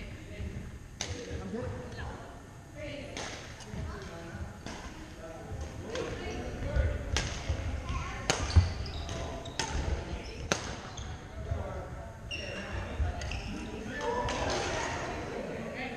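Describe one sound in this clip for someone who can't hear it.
Rackets smack a shuttlecock back and forth in a large echoing gym.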